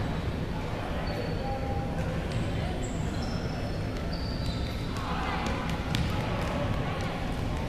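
A crowd of people chatters at a distance in a large echoing hall.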